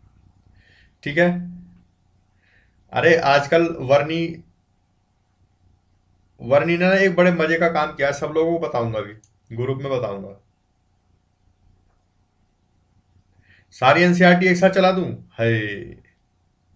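A young man speaks calmly into a close microphone, in bursts with pauses.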